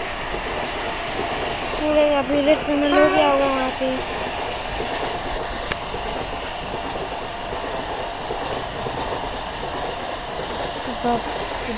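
A train rumbles steadily along rails.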